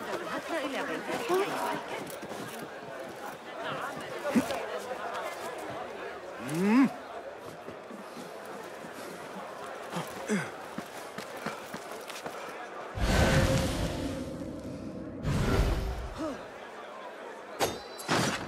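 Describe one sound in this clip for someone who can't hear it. Footsteps and hands scuff and thud on stone during climbing.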